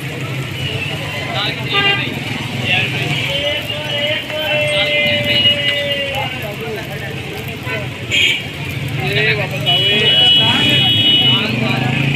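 A knife taps and scrapes against a metal griddle.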